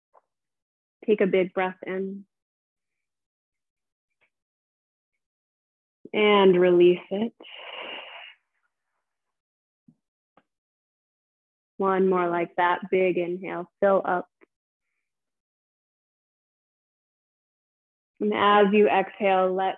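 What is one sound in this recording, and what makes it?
A woman speaks calmly and softly into a close microphone, with long pauses.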